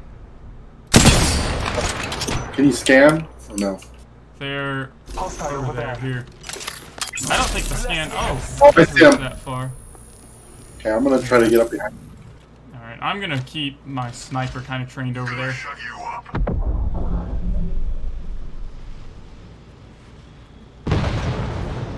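A rifle fires loud, sharp shots with a booming echo.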